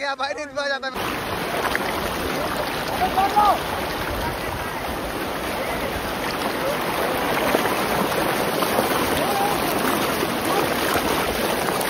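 Water rushes and splashes over rocks in a river.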